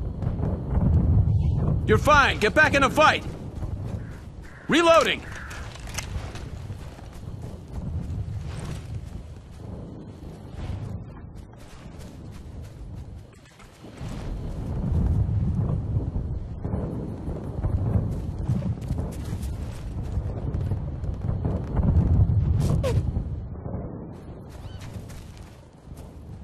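A rifle fires repeated shots in bursts.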